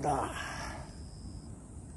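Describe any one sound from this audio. A fish splashes at the surface of the water.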